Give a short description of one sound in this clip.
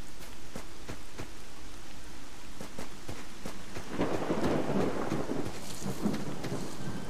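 Footsteps crunch steadily on dry, hard ground.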